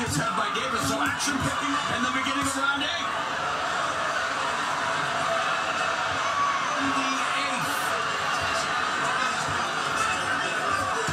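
A large crowd cheers and shouts throughout an echoing arena.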